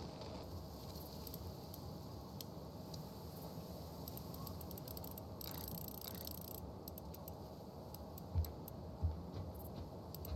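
A combination dial clicks as it turns.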